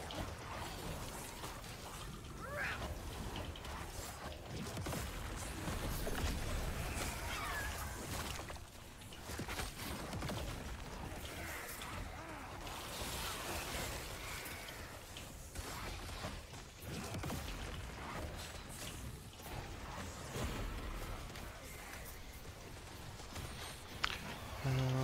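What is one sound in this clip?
Game spells crackle and explode in rapid bursts.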